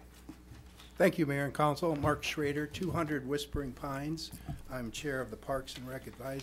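An elderly man reads out calmly into a microphone.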